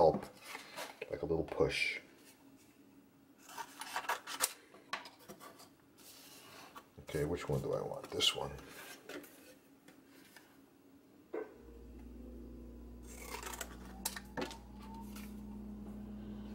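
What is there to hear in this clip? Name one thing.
Sheets of cardboard rustle and slide on a wooden surface.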